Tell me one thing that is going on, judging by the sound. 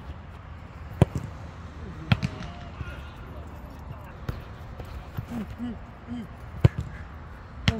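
A football is struck hard with a sharp thump.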